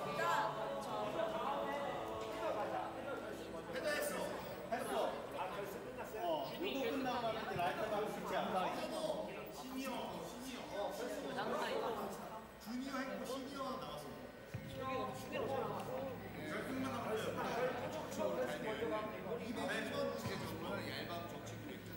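A man speaks with animation through a loudspeaker in a large echoing hall.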